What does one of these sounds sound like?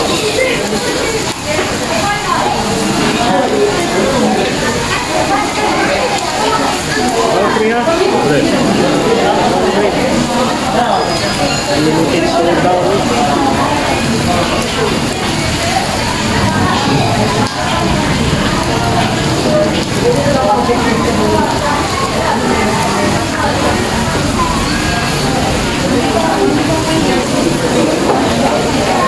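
Many people chatter in the background of a busy room.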